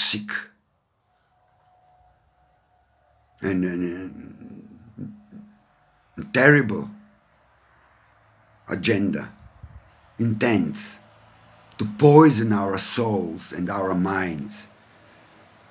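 An older man speaks calmly and close to a microphone, in short phrases with pauses.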